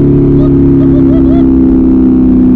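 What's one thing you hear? A young man speaks briefly over the engine noise.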